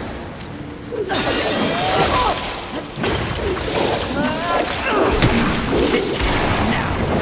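A monster growls and roars.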